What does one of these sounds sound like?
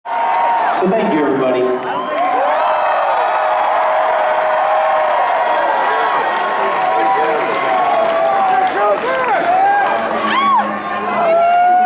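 A crowd cheers loudly in a large hall.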